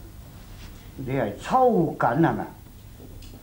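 A middle-aged man speaks firmly and loudly nearby.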